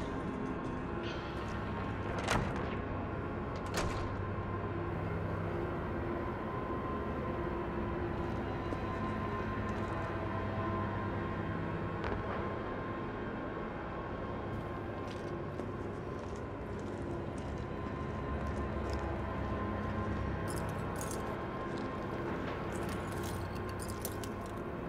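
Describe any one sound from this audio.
Footsteps walk slowly over a hard floor.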